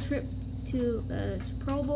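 Paper cards rustle and slide against each other.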